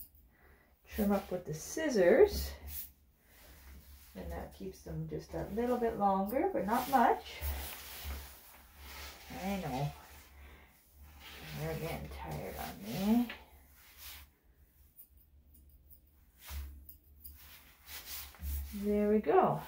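A woman speaks soothingly and close by.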